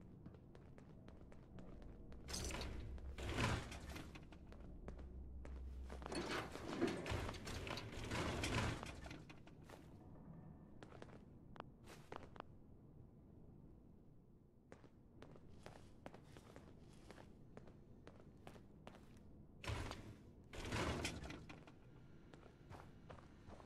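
Footsteps crunch over rubble and debris.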